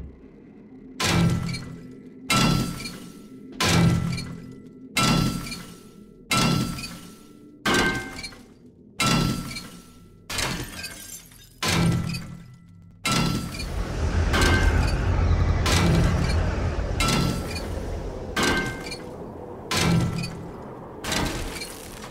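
A heavy metal wrench repeatedly strikes a car body with loud clanging blows.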